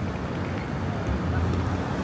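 A bicycle rolls past close by.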